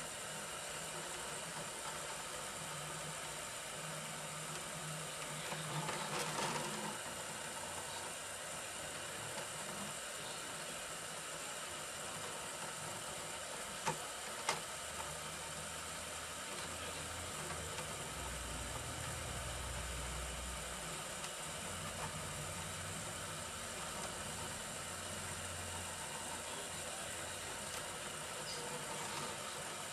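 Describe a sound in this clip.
A 3D printer's motors whir and hum as the bed moves back and forth.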